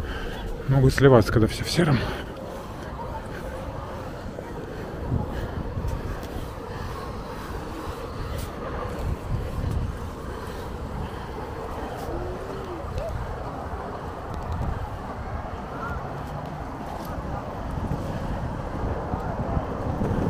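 Skateboard wheels rumble steadily over pavement.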